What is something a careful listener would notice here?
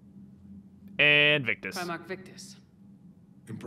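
A woman speaks calmly, close up.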